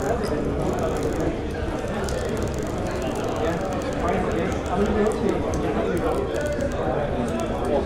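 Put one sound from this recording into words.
A crowd of men and women chatter and murmur indoors.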